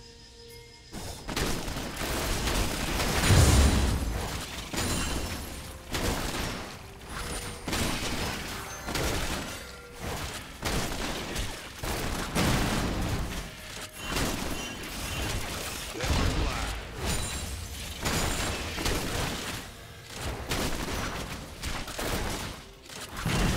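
Magic blasts and impacts crackle and boom during a fight.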